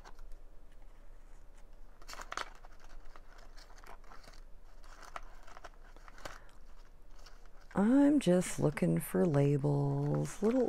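Paper scraps rustle and crinkle as they are shuffled in a plastic box.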